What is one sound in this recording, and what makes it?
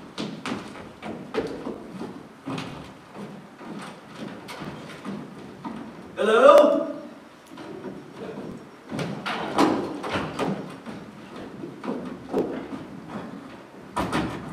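Footsteps thud on a wooden stage floor.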